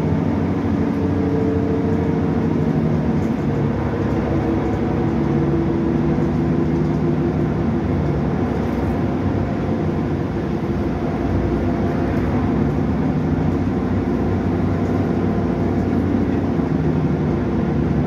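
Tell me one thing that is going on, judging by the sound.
A bus engine rumbles steadily while the bus drives along.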